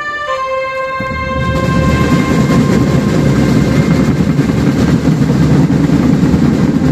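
Marching drums pound in a fast, loud rhythm.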